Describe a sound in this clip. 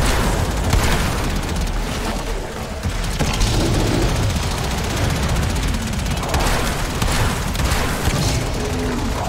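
Energy weapons fire in rapid bursts with crackling blasts.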